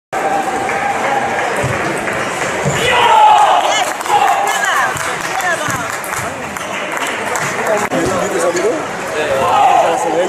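Many voices murmur and chatter in a large echoing hall.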